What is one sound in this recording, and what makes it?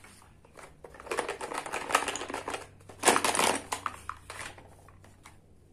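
Plastic toy pieces rattle and clatter in a basket.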